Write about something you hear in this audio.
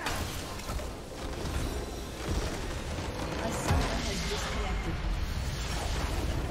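Magic blasts and clashing spell effects crackle and boom steadily.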